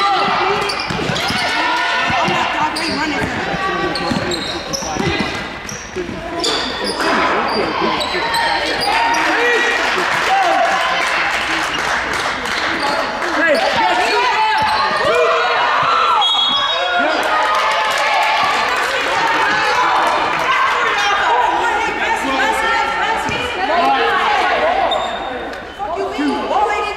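A crowd of spectators murmurs and chatters.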